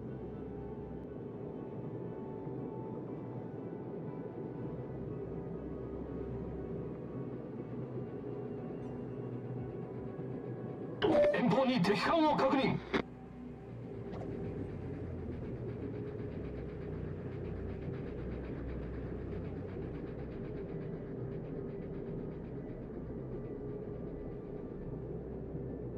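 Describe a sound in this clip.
A large ship's engine rumbles steadily.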